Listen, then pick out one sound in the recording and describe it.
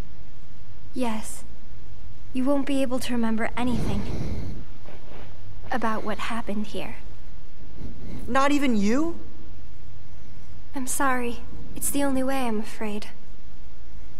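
A young girl speaks softly and sadly.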